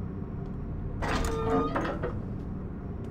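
A heavy metal door grinds open.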